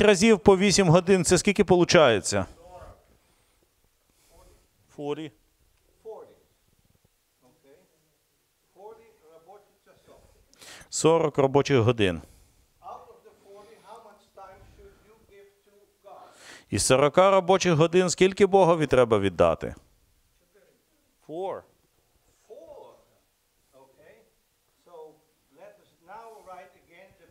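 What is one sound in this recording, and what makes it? An elderly man speaks calmly and close by, pausing often.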